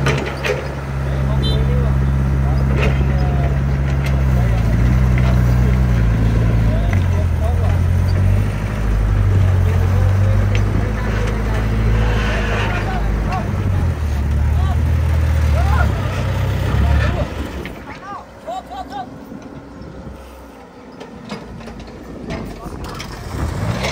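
Soil and rocks scrape and thud under an excavator bucket.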